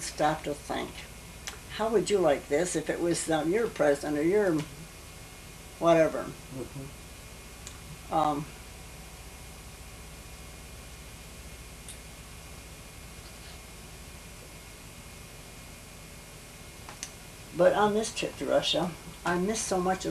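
An elderly woman talks calmly nearby, pausing between remarks.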